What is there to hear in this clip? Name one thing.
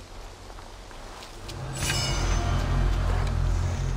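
Footsteps rustle through dry leaves and brush.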